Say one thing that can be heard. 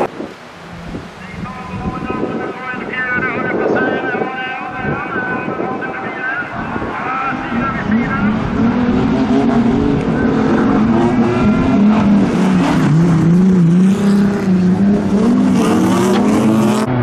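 Several racing car engines roar and rev as the cars speed past.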